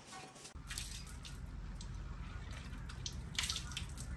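Water splashes as a man washes his face.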